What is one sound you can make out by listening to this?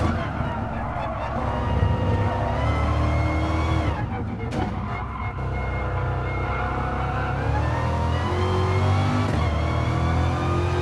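A race car engine roars loudly, rising and falling in pitch as it shifts gears.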